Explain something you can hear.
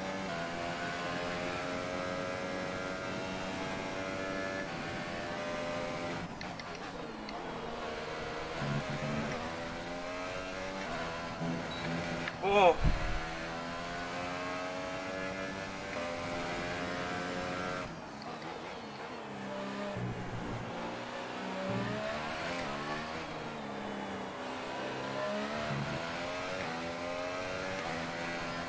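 A racing car engine roars and whines, rising and falling in pitch as it shifts gears.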